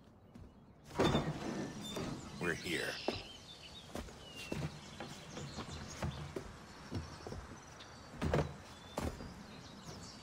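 Heavy cases thump and scrape as men move gear around.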